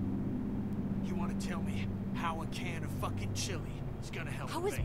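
A man speaks gruffly and angrily.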